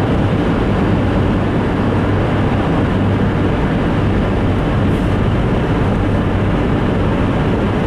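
Tyres roar steadily on a highway, heard from inside a moving car.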